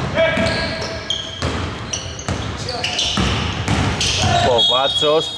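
Sneakers squeak sharply on a wooden court in a large echoing hall.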